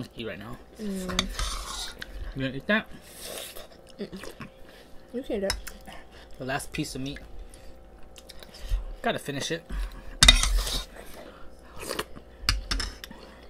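A young woman chews food close by.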